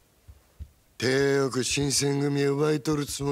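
A man speaks with a gruff, mocking voice.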